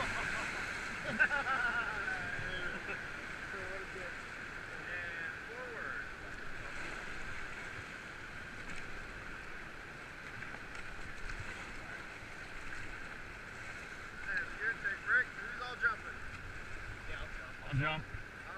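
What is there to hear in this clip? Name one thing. Men talk and call out to each other over the water.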